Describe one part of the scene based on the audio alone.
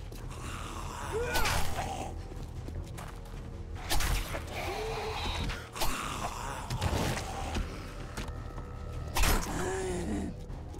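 Zombies growl and groan nearby.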